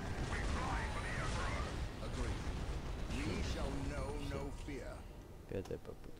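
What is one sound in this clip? Laser beams fire with a sizzling hum.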